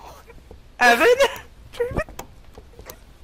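A fist knocks on a wooden door.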